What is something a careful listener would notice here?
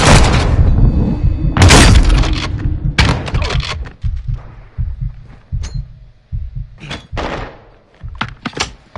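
Footsteps thud steadily.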